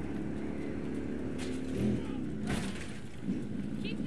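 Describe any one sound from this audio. A motorcycle thuds into a car.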